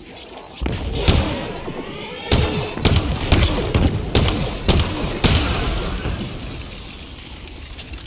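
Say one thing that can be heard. A creature growls and roars menacingly.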